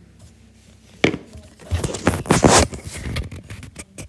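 A plastic bowl knocks and rustles as it is handled.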